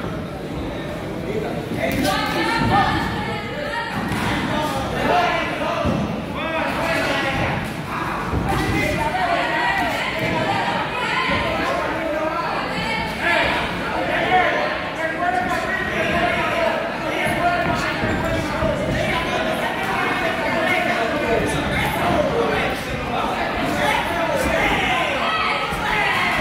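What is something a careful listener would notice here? A man calls out instructions loudly.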